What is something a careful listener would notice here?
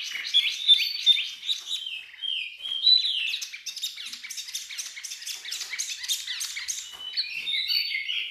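A small bird sings a fast, chattering song of high trills and whistles.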